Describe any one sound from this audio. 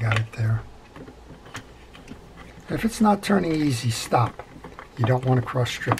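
A screwdriver turns a small screw with a faint scrape.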